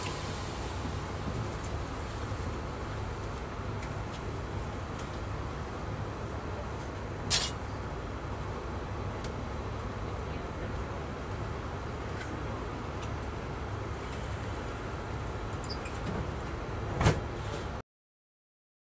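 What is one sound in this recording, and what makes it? A vehicle's engine idles with a steady low rumble.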